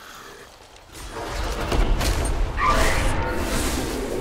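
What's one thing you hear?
Magic blasts and weapon clashes ring out in a fight.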